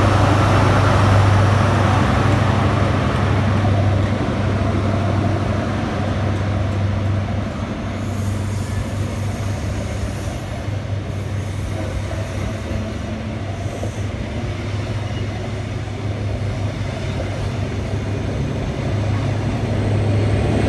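A diesel train engine rumbles loudly close by.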